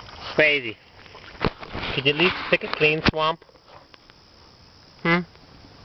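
A dog splashes and wades through shallow water.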